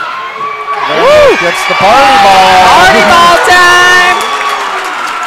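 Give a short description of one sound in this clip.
A crowd cheers and claps loudly in a large echoing gym.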